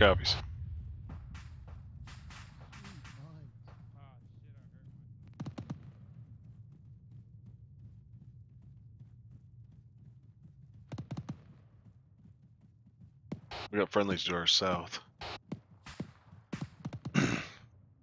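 Boots crunch on dry gravel.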